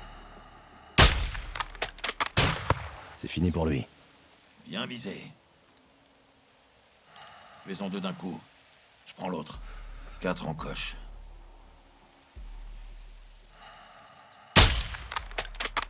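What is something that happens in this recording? A sniper rifle fires a loud, sharp shot with a ringing echo.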